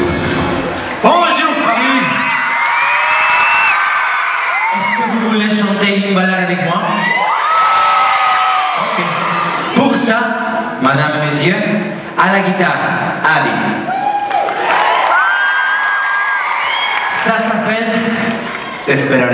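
A crowd screams and cheers loudly.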